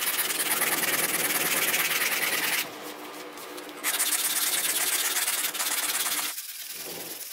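A knife blade rasps steadily against a sharpening tool.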